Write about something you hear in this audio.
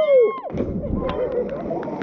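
A body splashes hard into water.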